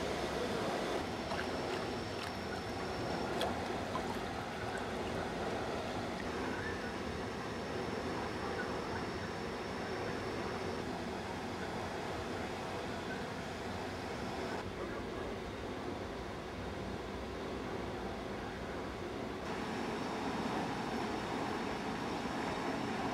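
Water laps and ripples gently.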